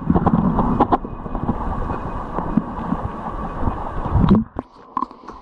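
Water from a shallow stream rushes and gurgles, heard from underwater.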